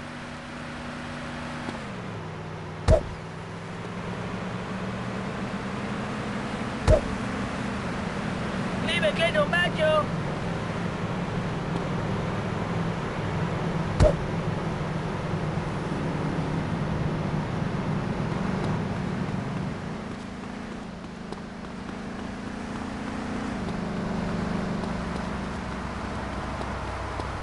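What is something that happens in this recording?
A vehicle engine hums steadily nearby.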